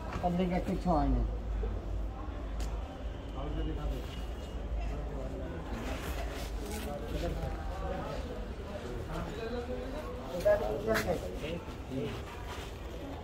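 Loose soil is scraped and shoveled by hand.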